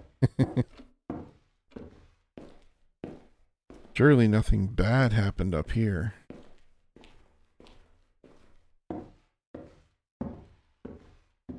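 Footsteps thud steadily on a wooden floor and stairs.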